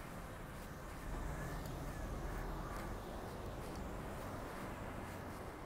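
A scooter passes by.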